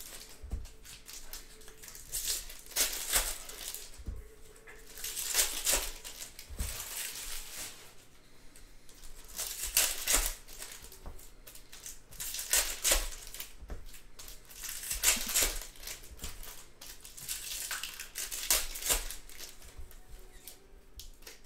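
Trading cards slide and flick against each other as they are shuffled.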